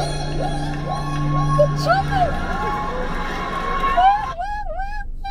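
A woman sings powerfully.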